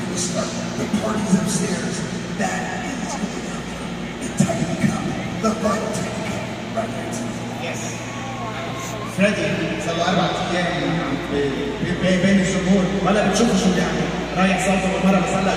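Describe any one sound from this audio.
A man speaks with animation over loudspeakers in a large echoing arena.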